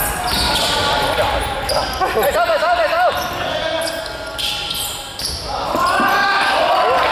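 Sneakers squeak sharply on a hard floor in a large echoing hall.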